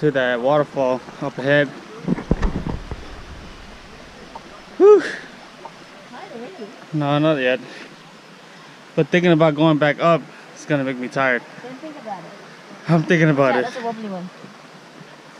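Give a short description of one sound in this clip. A young man talks calmly and close up, outdoors.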